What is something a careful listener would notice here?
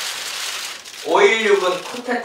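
A man speaks forcefully into a microphone.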